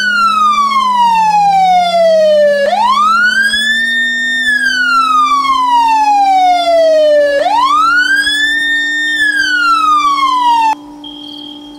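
A car engine hums steadily, rising slightly in pitch as the car speeds up.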